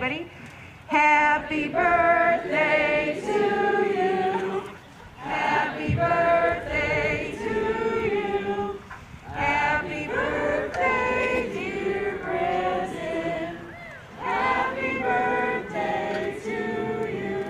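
A school band plays wind instruments.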